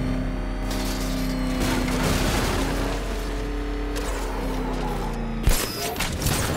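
A heavy vehicle engine roars and revs.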